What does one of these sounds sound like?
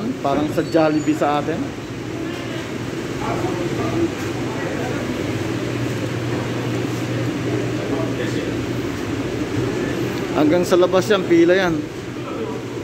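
A man speaks loudly close by.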